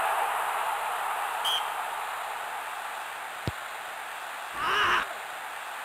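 A large stadium crowd roars steadily in the distance.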